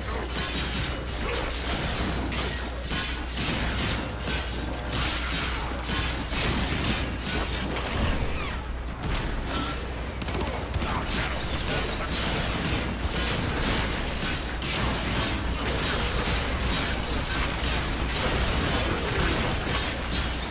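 Laser weapons zap and crackle rapidly.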